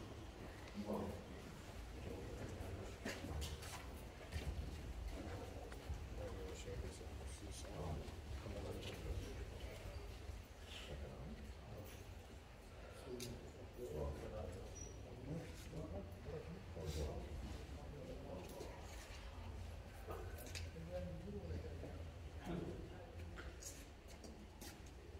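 A man recites a prayer in a slow chant through a loudspeaker in an echoing hall.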